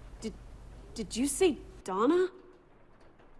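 A young woman asks a question with a rising voice, close by.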